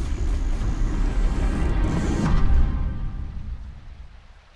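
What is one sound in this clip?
Heavy stone doors grind and rumble shut.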